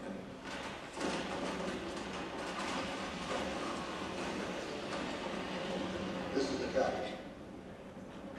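A jet engine roars loudly through a loudspeaker in a room.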